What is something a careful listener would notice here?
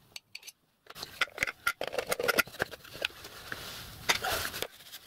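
Metal parts clink and clatter.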